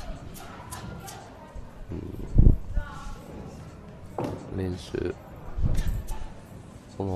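Bare feet thud and shuffle on a springy ring floor.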